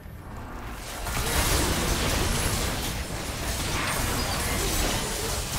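Magic blasts and impacts crackle and boom in a fierce fight.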